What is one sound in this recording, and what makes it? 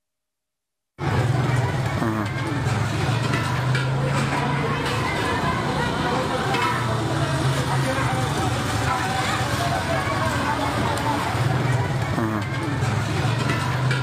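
A crowd of people chatters and murmurs outdoors.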